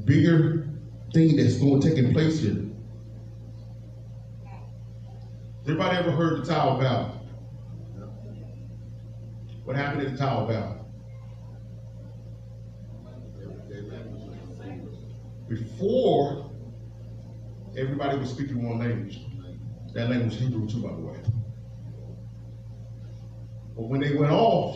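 A man speaks with animation into a microphone in a large echoing room.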